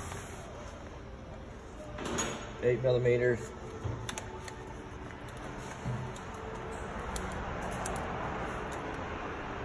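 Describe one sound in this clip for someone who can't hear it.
A metal clamp clicks and scrapes on a battery terminal.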